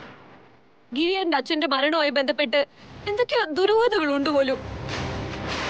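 A young woman speaks with distress, close by.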